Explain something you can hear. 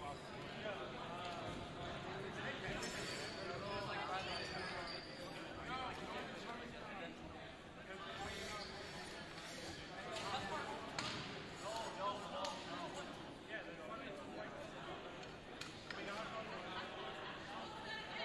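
A crowd of young men and women chatter throughout a large echoing gym.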